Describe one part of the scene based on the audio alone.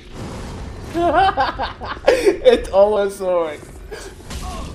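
A man laughs loudly, close to a microphone.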